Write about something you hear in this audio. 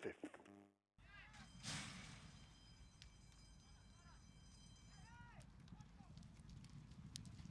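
Horses' hooves drum on a dirt track.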